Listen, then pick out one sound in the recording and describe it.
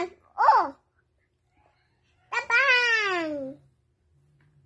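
A young girl squeals and shouts playfully close by.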